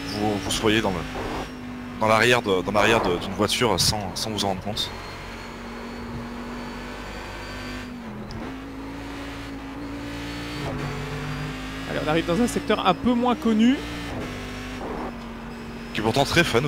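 A race car engine drones steadily, rising and falling as it shifts gears.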